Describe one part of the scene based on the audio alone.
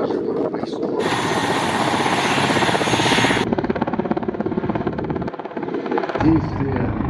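A helicopter's engine whines and its rotor thumps nearby.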